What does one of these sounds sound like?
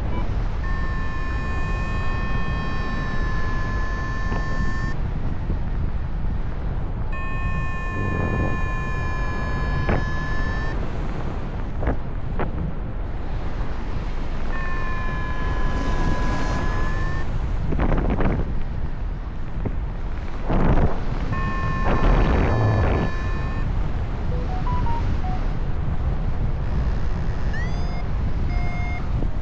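Wind rushes loudly and steadily past, high up in the open air.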